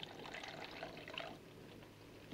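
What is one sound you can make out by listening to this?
Water pours from a kettle into a pot.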